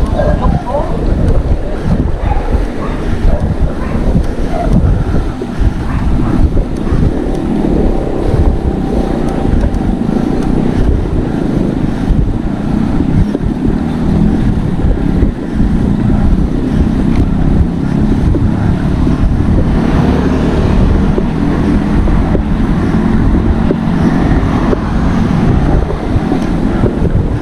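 Wind rushes loudly past a moving cyclist outdoors.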